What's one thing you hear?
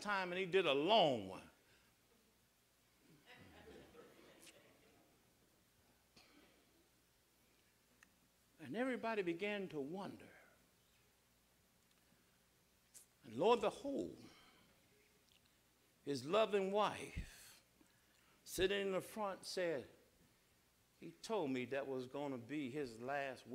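An elderly man preaches with feeling into a microphone, in bursts with pauses, in a reverberant hall.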